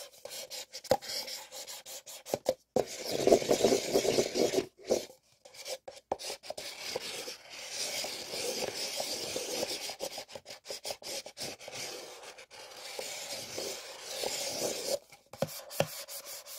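Paper cups tap together with soft knocks.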